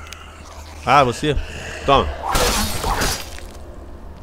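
A blade strikes a body with a wet thud.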